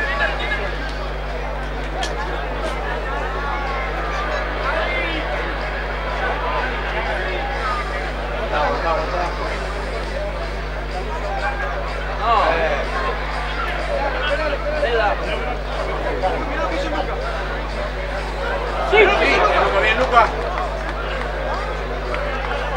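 A crowd of spectators chatters outdoors at a distance.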